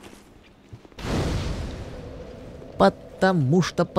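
A fire flares up with a loud whoosh.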